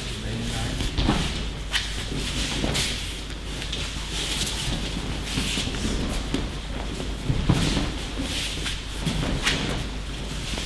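Bodies thump onto floor mats in a large echoing hall.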